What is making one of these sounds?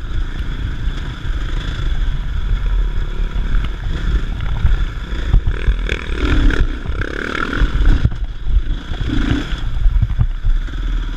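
A dirt bike engine revs while climbing a dirt trail.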